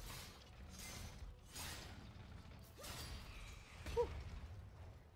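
Heavy metal blows clash and thud in a fight.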